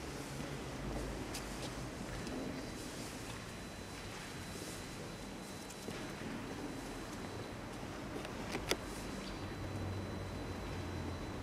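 A harp is plucked in an echoing hall.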